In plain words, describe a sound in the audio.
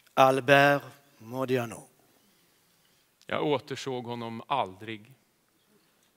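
A man sings in a large hall.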